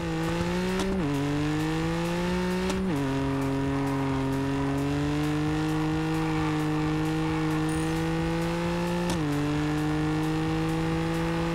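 A car engine roars as it accelerates hard, rising in pitch and dropping briefly at each gear change.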